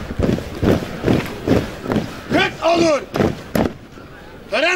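Boots stamp on pavement in a steady marching rhythm.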